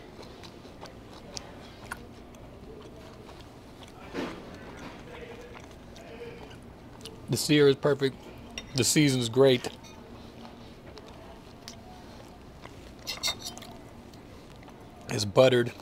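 A fork and knife clink and scrape on a plate.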